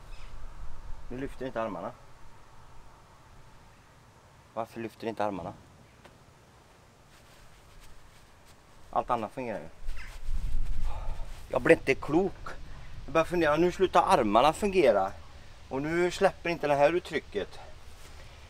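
A man speaks calmly to the listener, close by.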